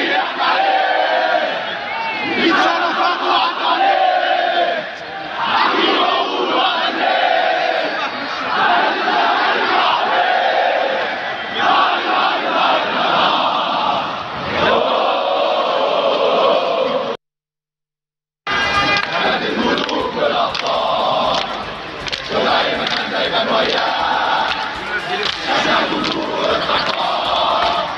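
A large crowd of men chants and cheers loudly outdoors.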